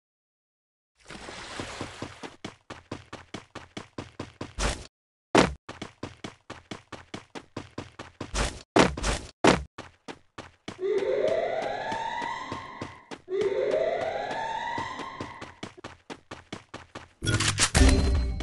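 Quick footsteps thud and patter as a game character runs.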